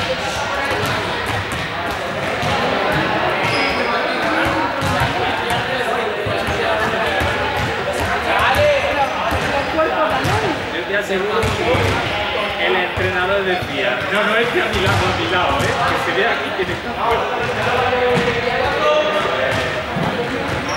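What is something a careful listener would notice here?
Children's voices chatter and call out across a large echoing hall.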